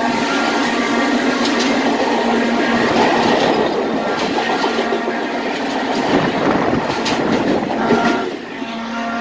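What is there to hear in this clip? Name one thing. Passenger train cars rumble and clatter past close by.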